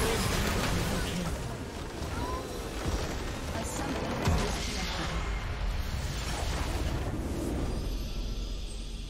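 Game spells crash and explode in a loud fight.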